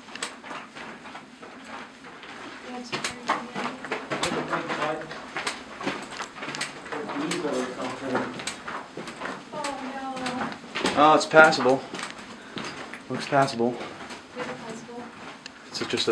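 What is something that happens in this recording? Footsteps crunch on a rocky floor.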